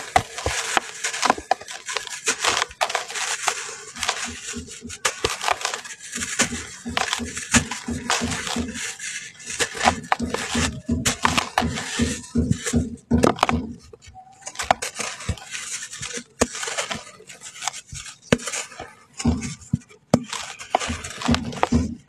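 Lumps of dirt crunch and break apart in hands.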